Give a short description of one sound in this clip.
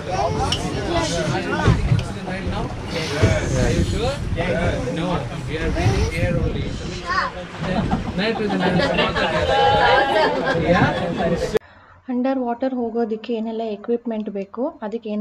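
Several passengers talk loudly over the engine noise nearby.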